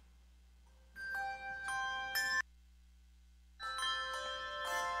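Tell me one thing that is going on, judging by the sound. Handbells ring out in a slow melody.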